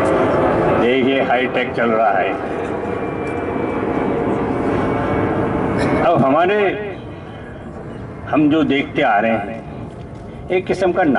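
An elderly man speaks with animation through a microphone and loudspeaker.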